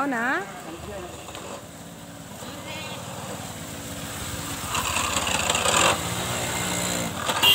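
A motorcycle engine hums as it rides slowly past.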